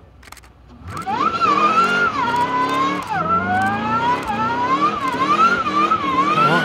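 A car engine revs hard up and down.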